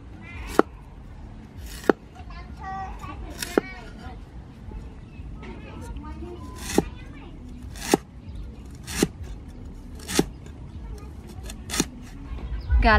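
A cleaver chops through ginger onto a wooden board with sharp, regular knocks.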